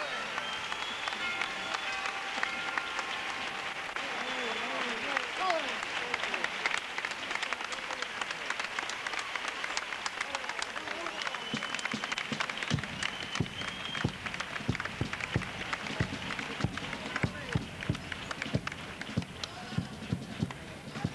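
A large group of men sings together on a stage in an echoing hall.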